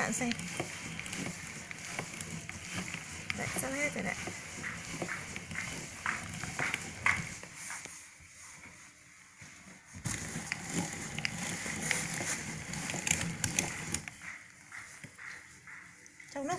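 A hand-cranked metal meat grinder squeaks and grinds as it turns.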